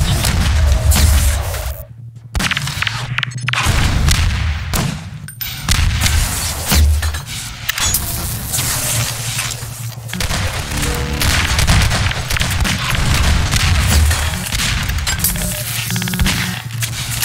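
Gunshots and weapon blasts go off in quick bursts.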